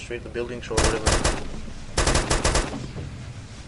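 Rapid gunfire rattles in short, loud bursts.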